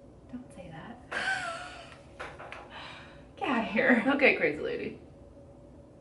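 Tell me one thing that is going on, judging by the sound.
Two young women laugh together.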